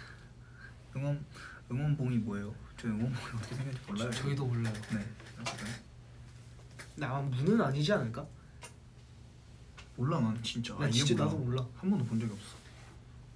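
Two young men talk with each other close by, in short bursts.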